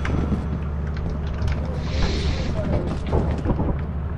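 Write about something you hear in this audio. A heavy metal door opens.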